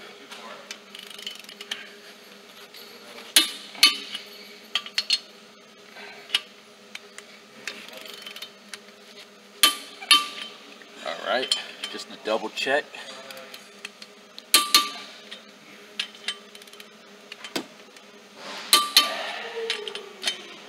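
A metal wrench clicks and clinks against a car wheel's lug nuts.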